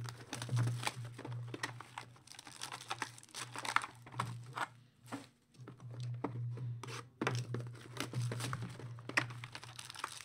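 A plastic wrapper crinkles and rustles.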